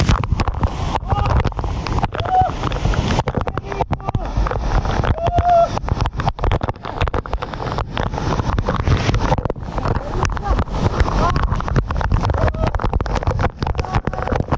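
A young man shouts and whoops excitedly under the falling water.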